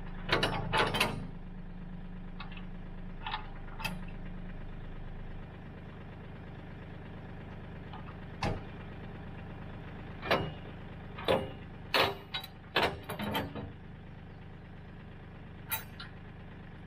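Metal parts clank and knock as a man handles a mower deck.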